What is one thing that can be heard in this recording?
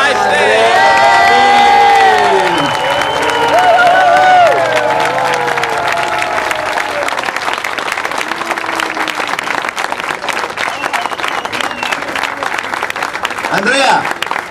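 A crowd cheers and whistles loudly outdoors.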